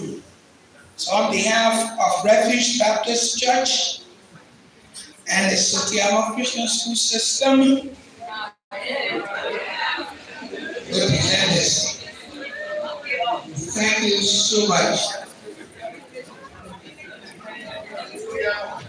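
A man speaks loudly through a loudspeaker in a large, echoing hall.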